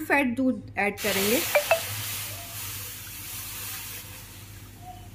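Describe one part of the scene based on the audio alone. Milk pours with a splash into a metal pan.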